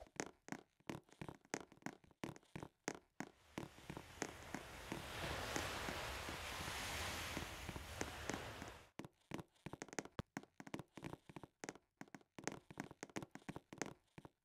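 Quick footsteps patter on a stone path.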